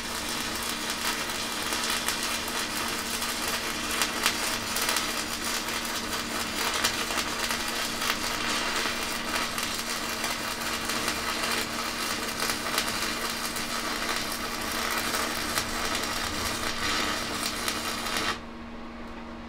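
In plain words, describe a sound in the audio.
A welding arc crackles and sizzles steadily.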